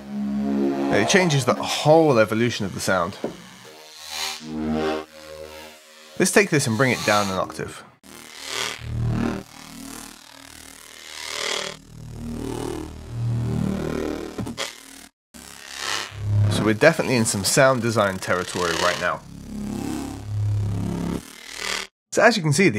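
A synthesizer plays short, chopped musical sounds.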